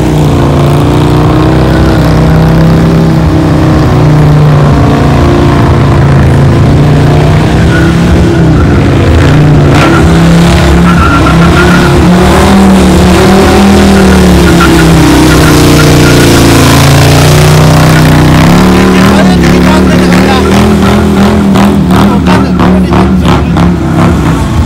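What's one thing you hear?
A motorcycle's rear tyre screeches as it spins on the pavement.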